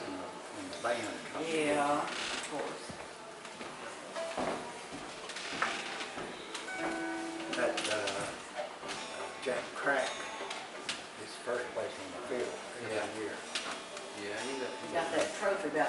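Elderly men talk casually nearby in a room with some echo.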